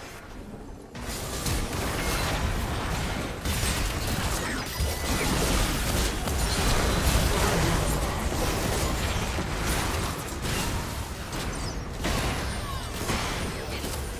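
Game spell effects crackle and explode in a busy fight.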